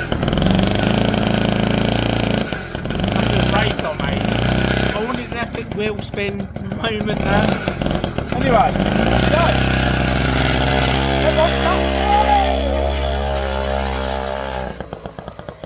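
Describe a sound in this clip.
A small two-stroke engine revs loudly and splutters close by.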